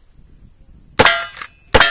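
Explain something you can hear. A steel target rings after being hit.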